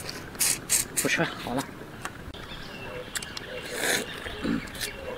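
A woman slurps and sucks loudly while eating.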